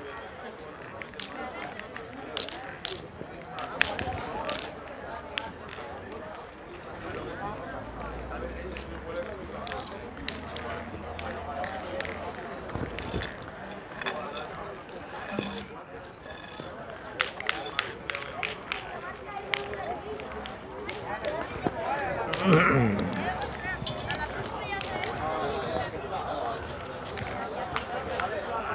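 Several young people talk and chatter outdoors.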